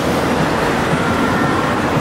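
A scooter motor whirs past.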